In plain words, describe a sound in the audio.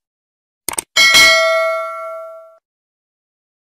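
A small bell rings once and slowly fades.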